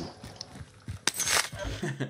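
A gun clicks and rattles as it is handled.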